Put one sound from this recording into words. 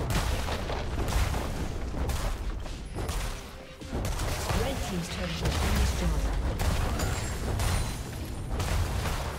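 Game spell effects and clashing blows crackle and thud in a fast fight.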